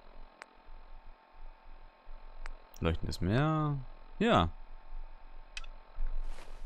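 Short electronic clicks tick as a menu is scrolled.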